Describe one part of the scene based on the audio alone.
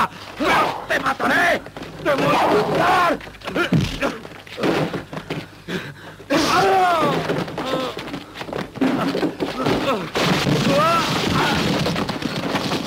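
Men grunt and shout as they struggle.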